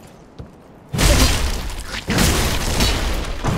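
A sword slashes and strikes with heavy blows.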